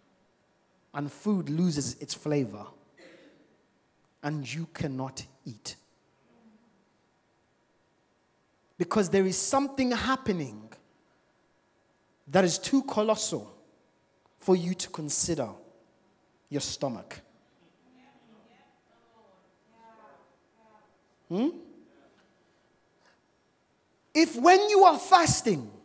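A man preaches with animation into a microphone, in bursts with pauses, heard over loudspeakers in a room.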